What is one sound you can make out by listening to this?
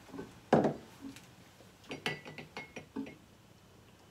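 Plastic clicks and taps against a glass.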